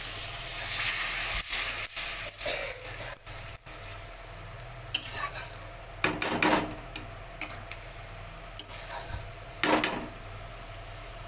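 A spatula scrapes against a metal pan.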